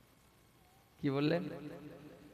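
A young man speaks through a microphone with animation.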